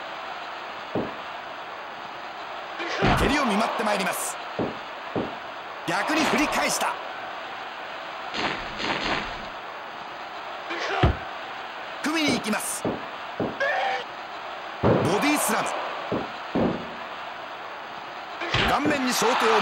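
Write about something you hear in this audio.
Heavy bodies thud onto a wrestling mat.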